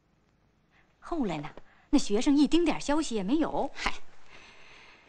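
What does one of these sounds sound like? An elderly woman speaks with feeling, close by.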